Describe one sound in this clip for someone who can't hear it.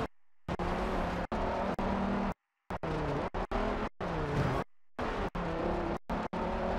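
A car engine roars at high revs, with the pitch rising and falling as gears change.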